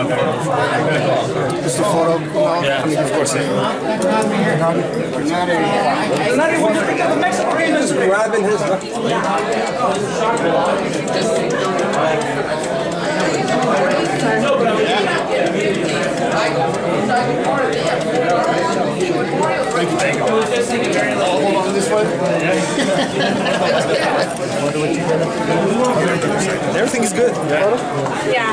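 A crowd of people chatter all around in a busy room.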